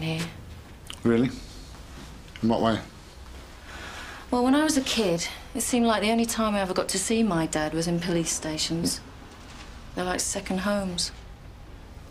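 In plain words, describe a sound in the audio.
A middle-aged man speaks in a low, serious voice, close by.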